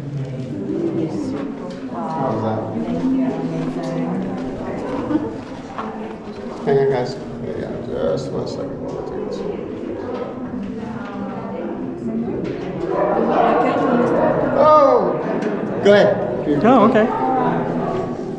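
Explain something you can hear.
Men and women chat nearby in a narrow echoing space.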